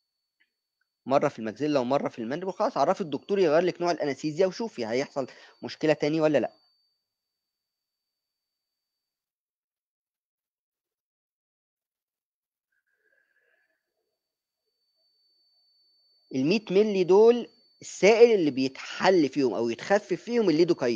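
A man speaks calmly through an online call, with long pauses.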